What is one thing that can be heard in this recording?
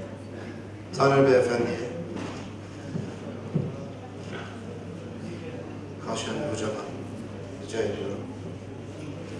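Men exchange short words in a large echoing hall.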